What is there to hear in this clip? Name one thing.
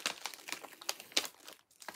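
A strip of backing tape peels off with a soft tear.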